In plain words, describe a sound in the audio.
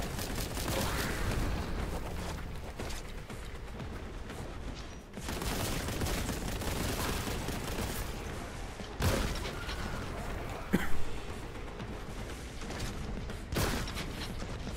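Explosions thunder nearby.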